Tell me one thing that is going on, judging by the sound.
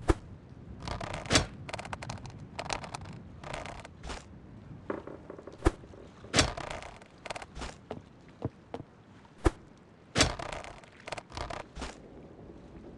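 A fishing reel whirs in short bursts.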